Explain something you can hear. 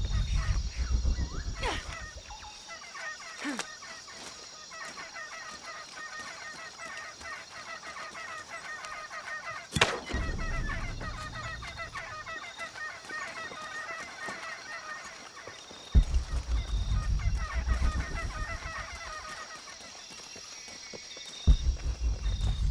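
Footsteps crunch over leaves and soft ground.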